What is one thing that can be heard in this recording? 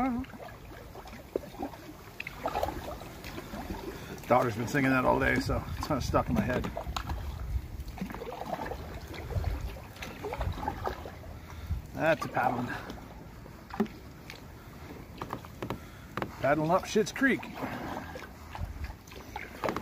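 A kayak paddle splashes in the water.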